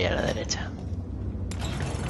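A small metal gear mechanism clicks and ratchets as it is turned.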